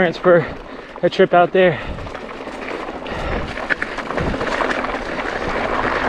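Bicycle tyres roll and crunch over a dirt trail with dry leaves.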